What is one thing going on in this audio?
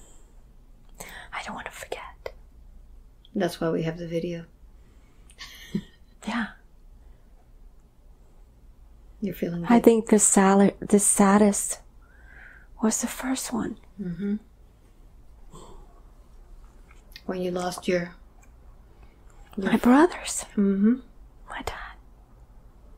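An elderly woman speaks slowly and quietly, close by, with long pauses.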